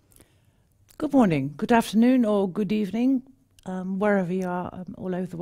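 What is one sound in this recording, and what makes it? A middle-aged woman speaks calmly and clearly into a microphone.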